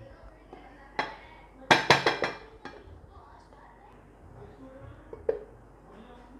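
Fingers tap on a metal cake tin, making hollow knocks.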